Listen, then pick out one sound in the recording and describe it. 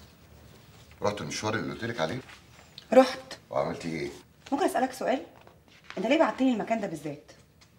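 A young woman speaks calmly and seriously nearby.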